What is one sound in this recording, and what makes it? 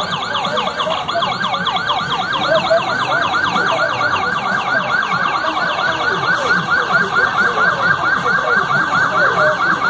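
An ambulance siren yelps rapidly close by.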